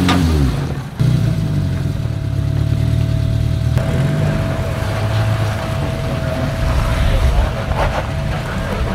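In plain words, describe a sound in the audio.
Another off-road vehicle's engine growls steadily at low speed.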